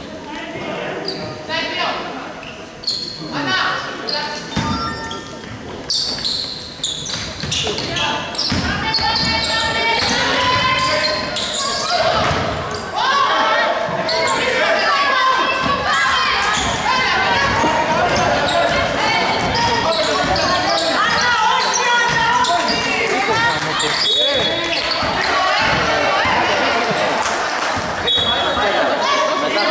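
Young women players shout to each other across the court.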